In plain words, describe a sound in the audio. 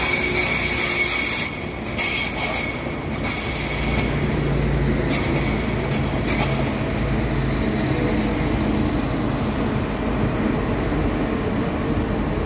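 Train wheels squeal and clatter on the rails.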